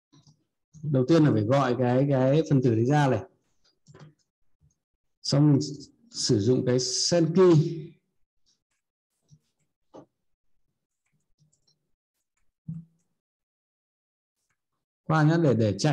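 A man speaks calmly and close to a microphone, explaining in short bursts with pauses.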